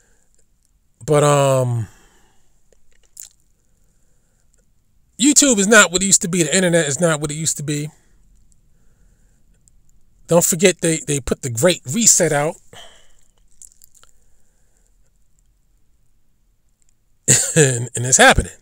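A man speaks with animation in short bursts, close to a microphone.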